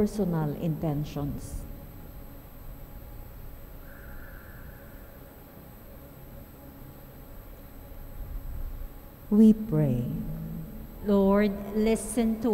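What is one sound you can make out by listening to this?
A woman speaks slowly through a microphone, pausing between phrases.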